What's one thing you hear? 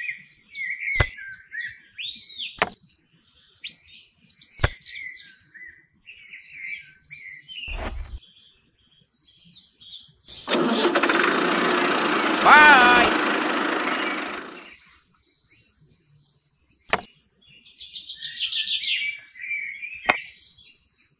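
Small plastic parts click as they are set down.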